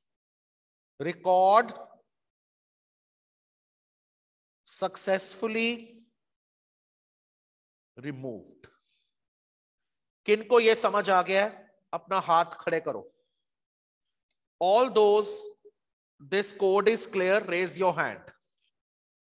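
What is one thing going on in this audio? A man speaks calmly through an online call, in short phrases with pauses.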